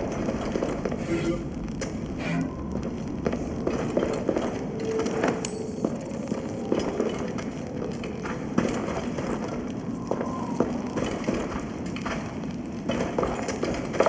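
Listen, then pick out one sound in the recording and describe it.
A torch flame crackles.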